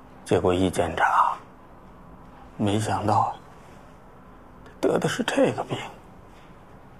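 An elderly man speaks calmly and close by, in short phrases.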